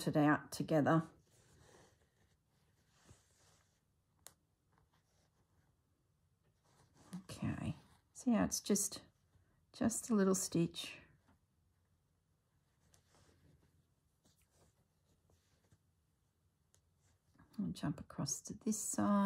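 Cloth rustles softly as it is handled.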